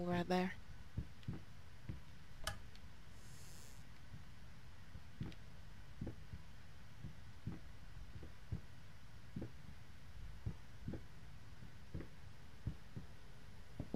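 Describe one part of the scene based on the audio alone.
Slow footsteps fall on a wooden floor.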